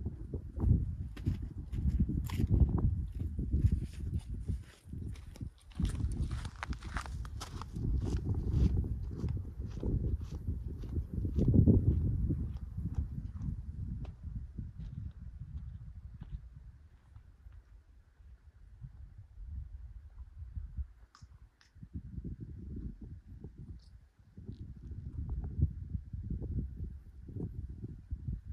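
Wind gusts outdoors, rustling through shrubs.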